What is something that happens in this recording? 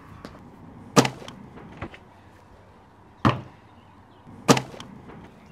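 A ball smacks sharply into hands.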